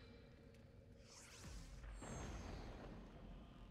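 A bright magical shimmer swells and fades.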